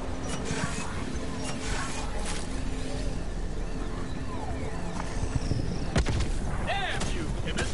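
Electronic game sounds chirp and whoosh.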